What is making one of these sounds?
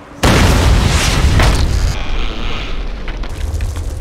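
Glass shatters.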